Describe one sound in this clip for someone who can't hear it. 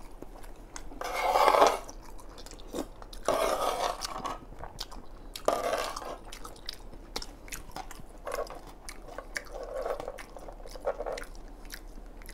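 A young man slurps and chews food close to a microphone.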